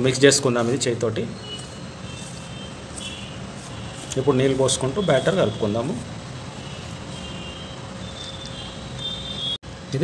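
Fingers rub and stir dry flour, making a soft rustle.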